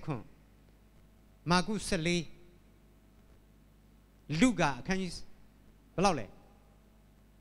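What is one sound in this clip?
A man speaks into a microphone in short, animated phrases, heard through a loudspeaker in a room.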